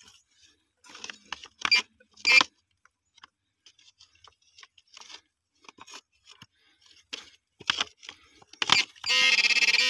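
A probe scrapes and knocks against dry soil.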